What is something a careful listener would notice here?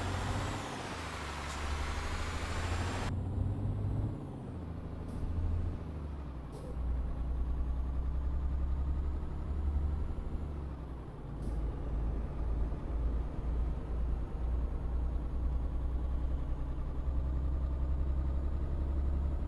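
A truck's diesel engine drones steadily, rising and falling with speed.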